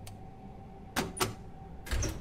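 A heavy metal lock clunks open.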